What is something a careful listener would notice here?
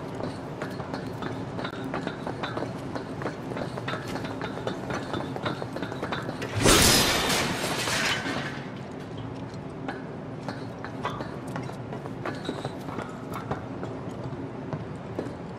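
Footsteps clank on a metal grating.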